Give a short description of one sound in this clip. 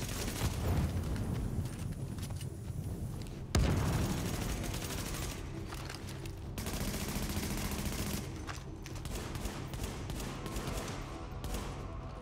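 A rifle fires gunshots.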